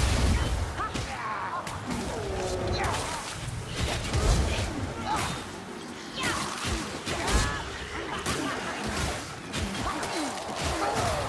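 Creatures shriek and groan as they are struck down.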